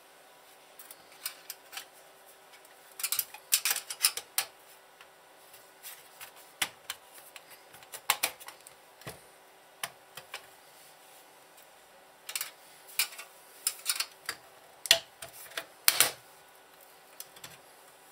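A screwdriver scrapes and taps against metal.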